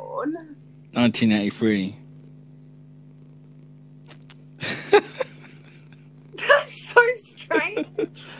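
A man laughs heartily over an online call.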